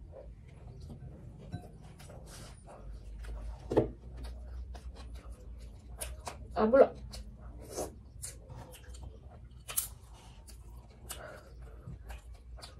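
Fingers mix and squish soft food in a bowl.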